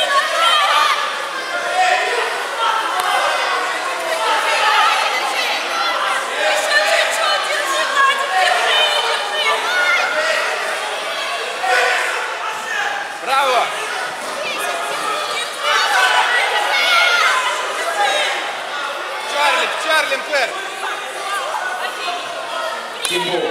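A crowd of spectators talks and calls out in a large echoing hall.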